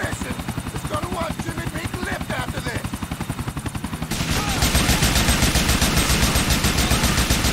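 An assault rifle fires rapid bursts.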